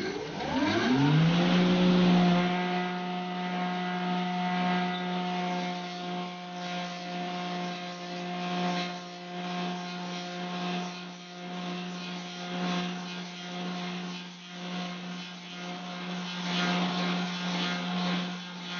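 An old electric motor whirs up to speed and settles into a steady hum.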